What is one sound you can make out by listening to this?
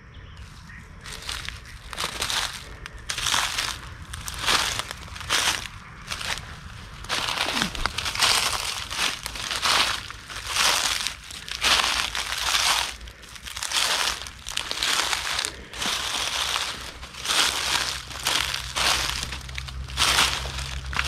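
Footsteps crunch and rustle through dry leaves on the ground.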